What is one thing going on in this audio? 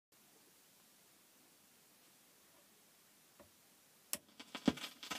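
A vinyl record crackles and hisses softly as it spins.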